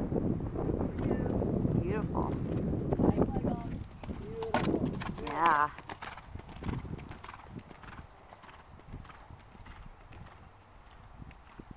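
A horse's hooves thud on soft sand as it canters and jumps.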